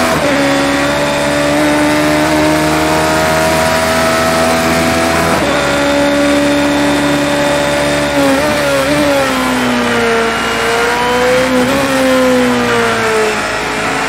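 A racing car engine roars at high revs, its pitch climbing through each gear and dropping at shifts.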